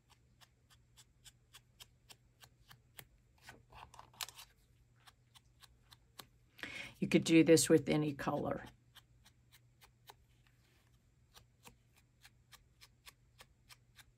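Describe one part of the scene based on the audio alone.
A small stamp taps lightly and repeatedly on paper.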